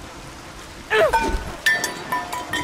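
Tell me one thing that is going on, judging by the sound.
A young woman cries out loudly in anger.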